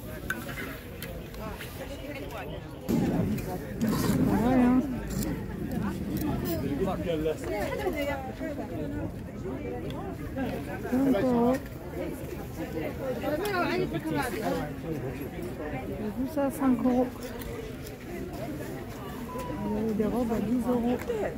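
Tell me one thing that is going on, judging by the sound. Clothes on hangers rustle and brush together as a hand pushes through them.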